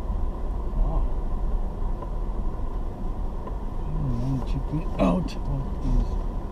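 Tyres rumble over a rough dirt road.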